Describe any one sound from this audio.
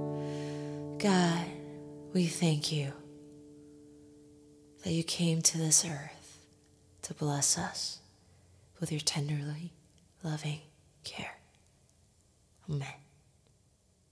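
A young woman sings closely into a microphone.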